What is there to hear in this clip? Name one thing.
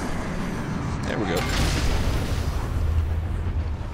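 A magical whoosh swells and rings out.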